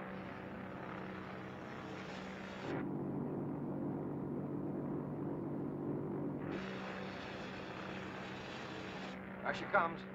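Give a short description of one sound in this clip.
A flare burns with a loud, steady hiss.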